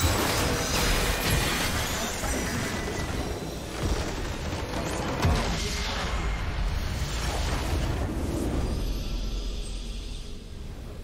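Spell effects and battle sounds crash and whoosh in a game fight.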